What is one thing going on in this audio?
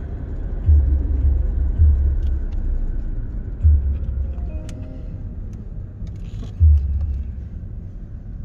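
Wind buffets against a moving car in bursts.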